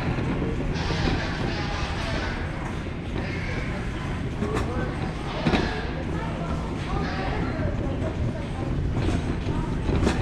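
A shopping cart rolls and rattles over a smooth floor.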